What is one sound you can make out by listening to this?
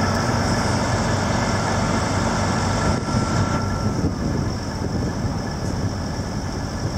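A diesel truck engine rumbles loudly as the truck drives slowly past.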